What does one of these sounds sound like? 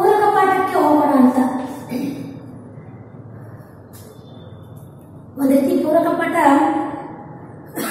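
A woman speaks clearly in a slow, teaching tone, heard close to a microphone.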